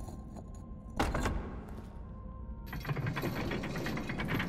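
A heavy stone wall grinds as it slides open.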